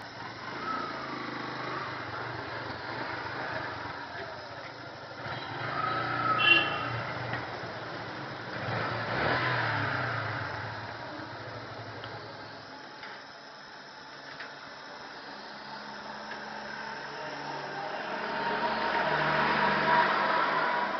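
A motorcycle engine idles and revs nearby.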